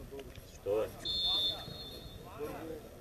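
A referee's whistle blows once in the distance.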